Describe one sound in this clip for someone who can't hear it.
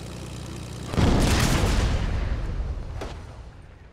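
A plane crashes with a loud, roaring burst.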